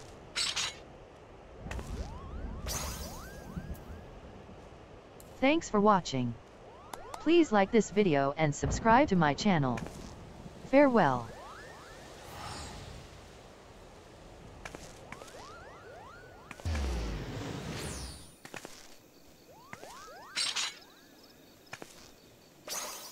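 Magic spells shimmer and whoosh in bursts.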